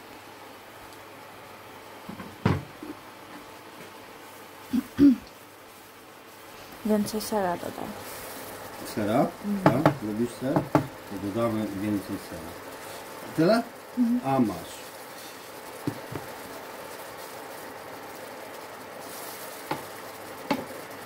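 A wooden spoon scrapes and stirs food in a pan.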